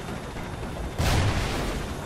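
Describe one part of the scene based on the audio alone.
An explosion booms in the distance.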